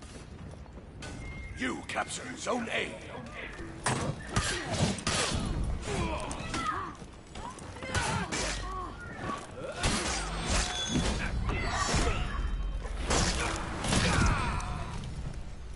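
Steel blades clash and clang in a fight.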